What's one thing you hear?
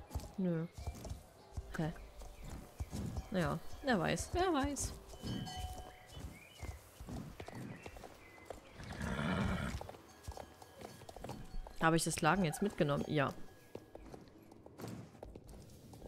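A horse gallops with quick, thudding hoofbeats.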